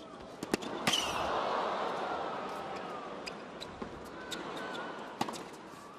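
A crowd cheers and applauds loudly, then slowly quiets.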